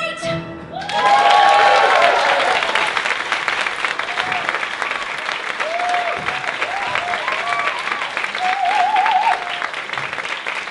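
People in an audience cheer and whoop.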